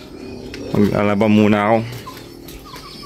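A rooster crows nearby.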